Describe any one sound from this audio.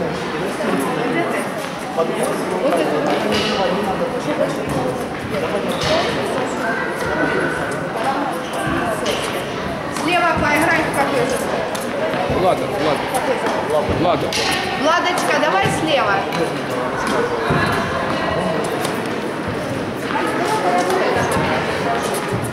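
A tennis racket hits a ball with a sharp pop.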